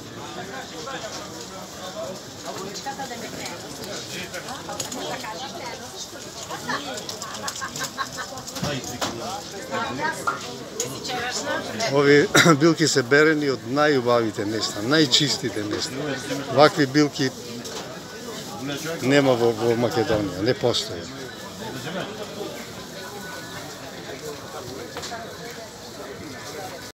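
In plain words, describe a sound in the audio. A market crowd murmurs in the background.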